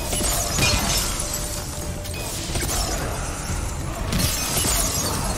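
Explosions burst with crackling debris.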